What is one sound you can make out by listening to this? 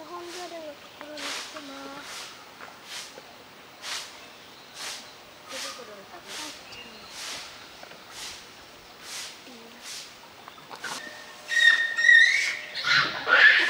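Monkeys give short, high cooing calls nearby.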